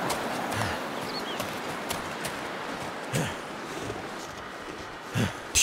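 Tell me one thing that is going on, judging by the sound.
Footsteps crunch slowly through deep snow.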